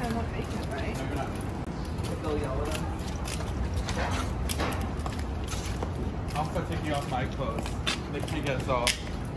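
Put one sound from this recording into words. Footsteps tap on a concrete sidewalk outdoors.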